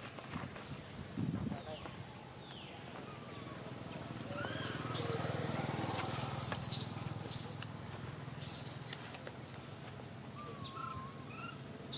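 Dry leaves rustle and crackle as a small monkey handles them.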